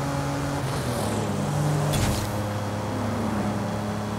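A passing car whooshes by.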